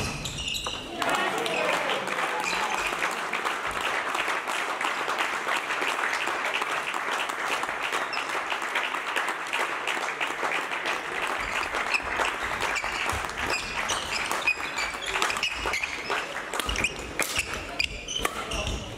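Rackets hit a shuttlecock with sharp pops.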